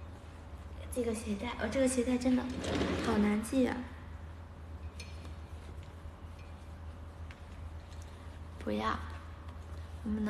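A young woman speaks softly and casually, close by.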